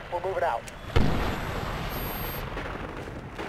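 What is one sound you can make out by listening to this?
A loud explosion booms close by and rumbles away.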